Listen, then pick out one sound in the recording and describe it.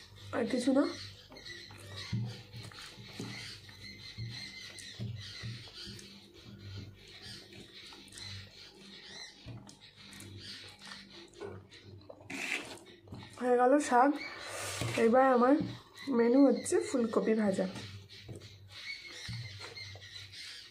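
A young woman chews food with soft smacking sounds.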